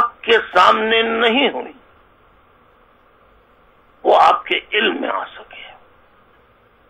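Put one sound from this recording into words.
A middle-aged man speaks emphatically into a close microphone, with pauses.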